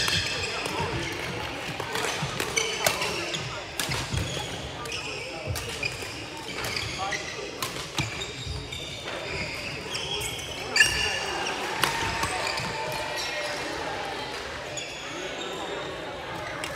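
Players' feet patter and thud on the floor.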